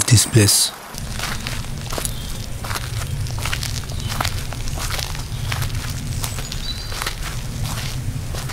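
Footsteps crunch on a gritty road at a steady walking pace.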